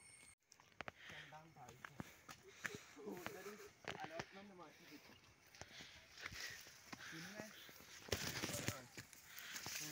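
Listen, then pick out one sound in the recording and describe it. Footsteps crunch on a dirt path.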